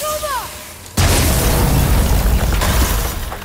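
A heavy metal brazier crashes down with a loud rumbling roar.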